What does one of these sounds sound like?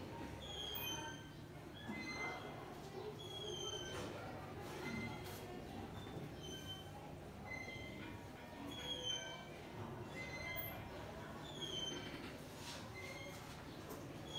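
A marker squeaks in short strokes on a whiteboard.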